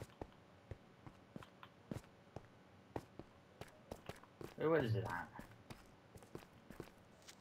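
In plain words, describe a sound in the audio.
Footsteps tread on stone in a steady rhythm.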